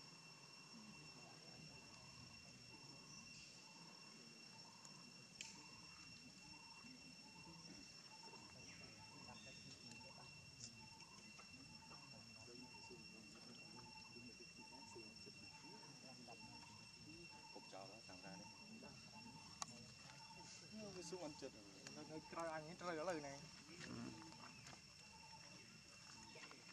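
A baby monkey suckles softly at close range.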